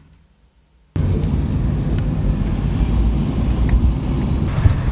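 A car engine rumbles steadily from inside the car as it drives along.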